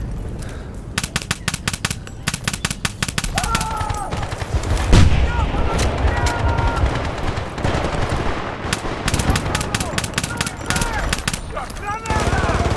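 Rapid rifle fire rattles in quick bursts.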